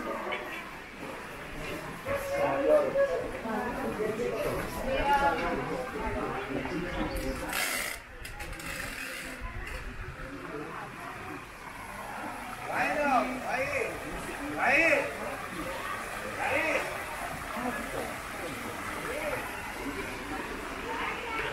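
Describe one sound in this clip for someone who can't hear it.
A crowd of men and women murmur and chatter nearby.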